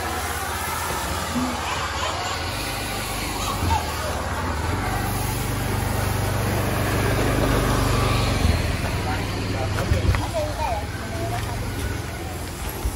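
A small fogging machine engine drones loudly and steadily.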